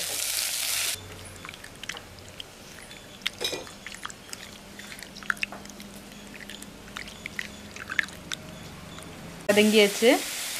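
A hand squelches and swishes through water in a bowl.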